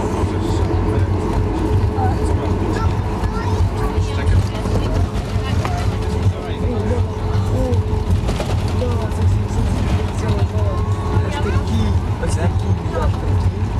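An airliner's wheels rumble over the taxiway.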